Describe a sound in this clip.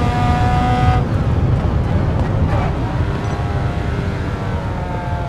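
A racing car engine slows and drops in pitch while braking for a corner.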